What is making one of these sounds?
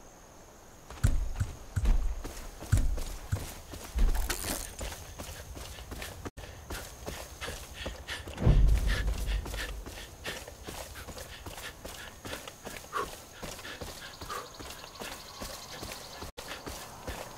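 Footsteps swish and crunch through dry grass.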